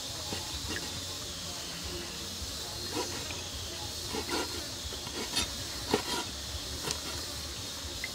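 A knife chops on a wooden board.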